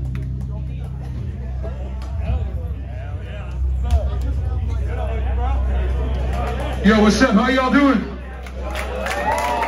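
Amplified instruments hum and buzz through loudspeakers.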